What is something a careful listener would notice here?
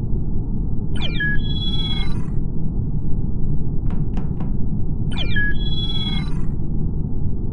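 A video game plays a bright electronic chime as a player joins.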